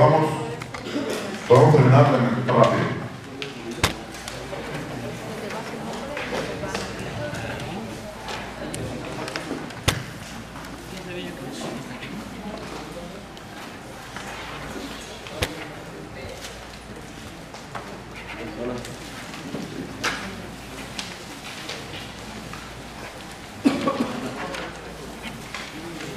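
A crowd of adults murmurs and chatters in an echoing room.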